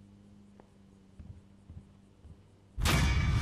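Footsteps thud softly across a floor.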